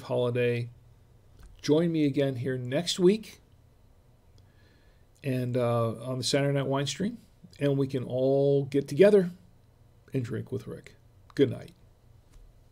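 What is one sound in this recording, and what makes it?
An older man talks calmly and closely into a microphone.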